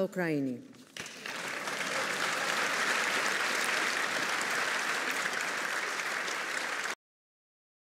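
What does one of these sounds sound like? A large crowd applauds in a large echoing hall.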